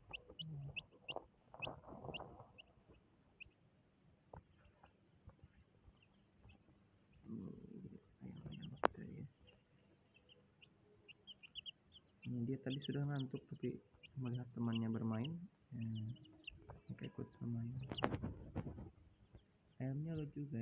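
Small chicks peep in quick, high chirps.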